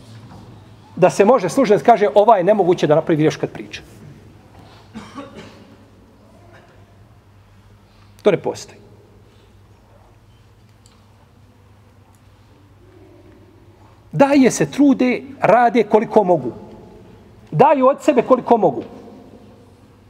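A middle-aged man speaks with animation into a close microphone, pausing between phrases.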